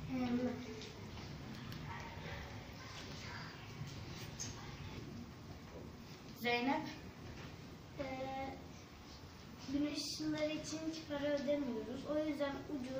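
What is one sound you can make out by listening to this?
A young girl speaks nearby, reading out haltingly.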